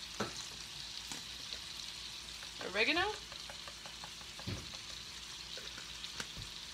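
Chicken sizzles in a cast-iron skillet.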